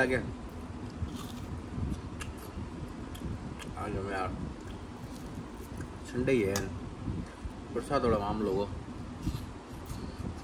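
A man chews and crunches food close by.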